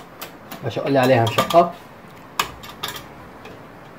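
A metal latch clicks.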